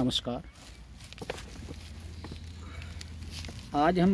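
Fingers brush softly through loose soil.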